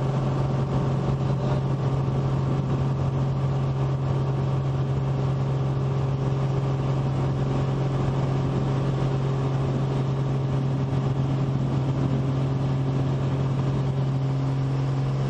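A small propeller plane's engine drones loudly at full power.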